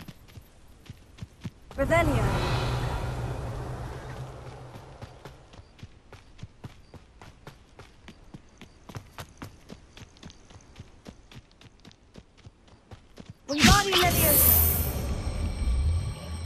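Quick footsteps run over grass and dirt.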